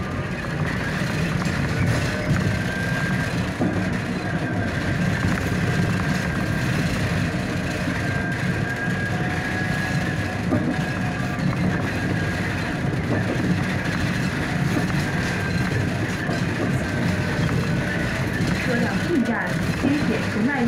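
Cars pass close by on the road.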